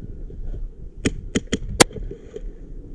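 An airsoft gun fires a quick burst of sharp shots close by.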